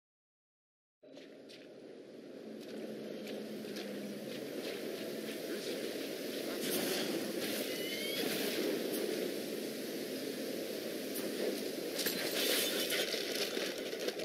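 Water gushes and splashes loudly.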